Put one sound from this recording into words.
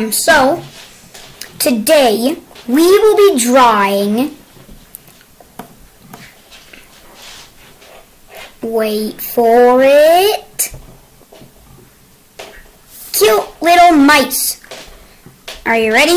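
A young boy talks with animation close to a microphone, with pauses.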